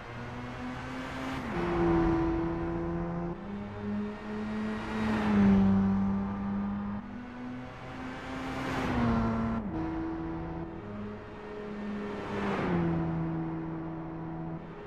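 A sports car roars past and fades away.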